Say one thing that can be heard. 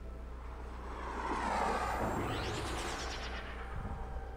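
A spaceship rushes past with a loud whoosh.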